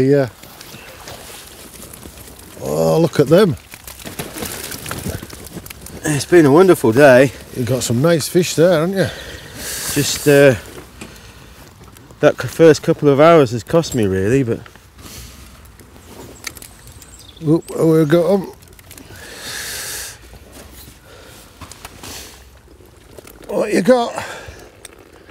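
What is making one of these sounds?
A man talks calmly outdoors, close by.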